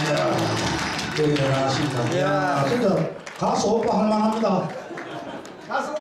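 A man sings into a microphone over loudspeakers in a large hall.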